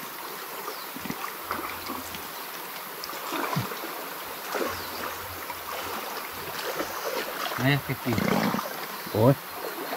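Water sloshes and splashes in a shallow stream.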